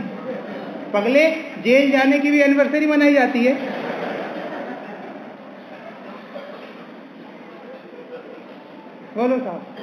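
A man sings in long, drawn-out notes through a microphone, with a lingering echo.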